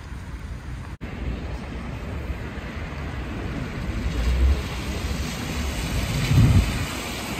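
A trolleybus hums and rumbles as it passes close by.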